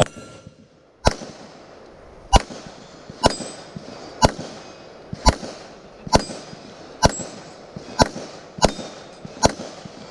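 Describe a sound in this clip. A pistol fires repeated shots outdoors, each echoing off the trees.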